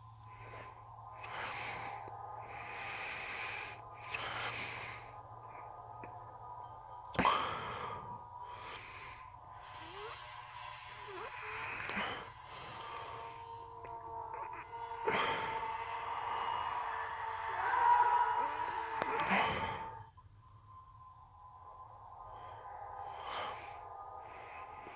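Music plays softly through a small speaker.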